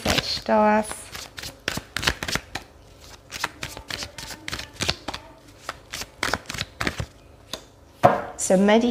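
Playing cards riffle and shuffle in quick clicks.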